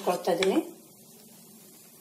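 A spatula scrapes a flat pan.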